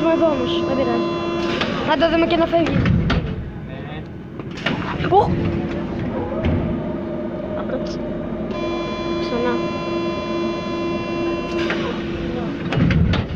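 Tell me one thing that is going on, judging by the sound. A train rumbles and hums steadily.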